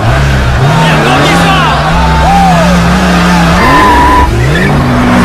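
Tyres squeal on pavement.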